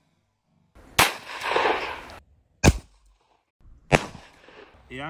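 Gunshots bang sharply outdoors.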